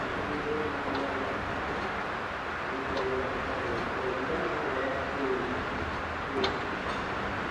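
Tram wheels clack over rail joints.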